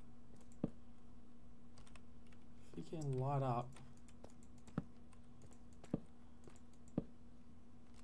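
Footsteps tap on hard stone.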